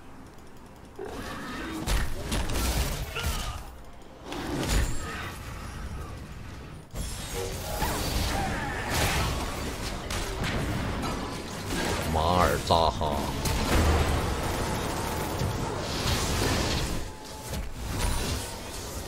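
Game sound effects of spells and hits burst and clash.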